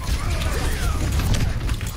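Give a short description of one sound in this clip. A sword slashes through the air.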